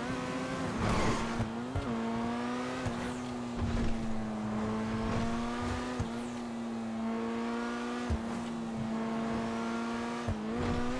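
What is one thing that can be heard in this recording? A sports car engine hums steadily at speed, shifting gears now and then.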